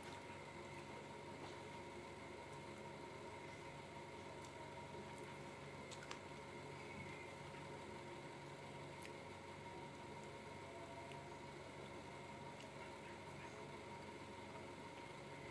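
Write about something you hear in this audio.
Food crinkles and rustles in a young woman's fingers.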